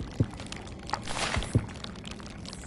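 A sheet of paper rustles as it is picked up.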